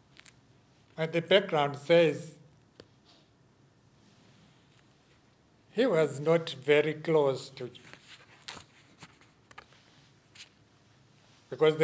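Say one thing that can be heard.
A middle-aged man speaks slowly and calmly into a microphone, with long pauses.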